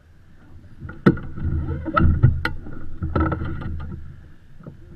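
Sailboat rigging clinks and knocks.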